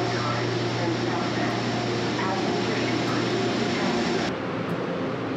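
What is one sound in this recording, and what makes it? A locomotive engine idles with a low, steady hum.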